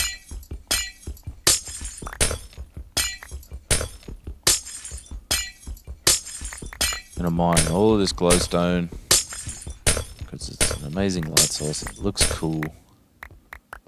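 A pickaxe chips at blocks in quick, rhythmic knocks.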